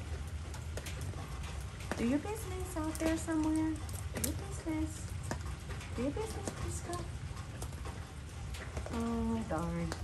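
Light rain patters outdoors.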